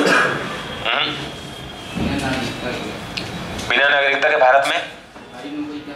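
A young man speaks calmly through a headset microphone, as if lecturing.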